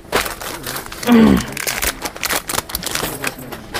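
A plastic packet crinkles in a man's hands.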